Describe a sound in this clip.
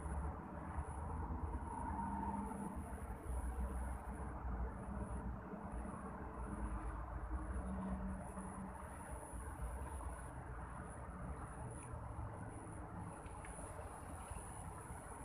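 Wind gusts and rumbles outdoors by the water.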